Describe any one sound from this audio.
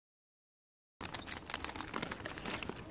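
Paper crinkles and rustles as hands unwrap a package.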